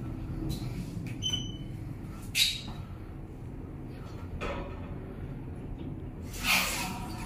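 A lift hums steadily as it moves.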